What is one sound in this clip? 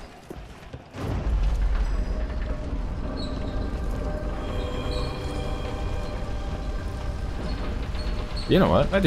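A lift rumbles steadily as it rises.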